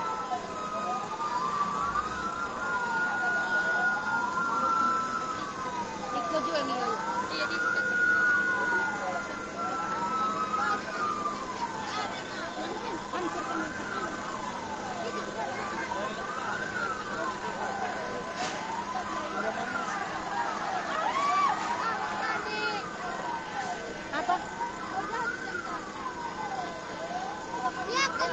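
Sirens wail up and down steadily.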